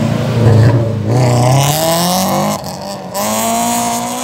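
Car tyres screech on the road.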